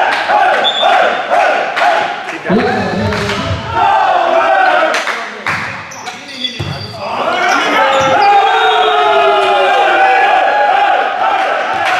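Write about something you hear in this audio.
Young men shout and cheer in a large echoing hall.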